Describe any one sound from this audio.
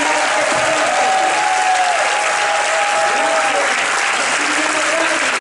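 A man speaks through a loudspeaker in a large echoing hall.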